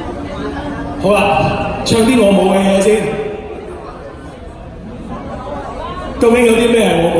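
A man sings loudly into a microphone through a loudspeaker.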